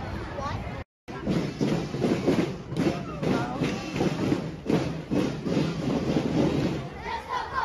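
Drums beat steadily as a children's group marches.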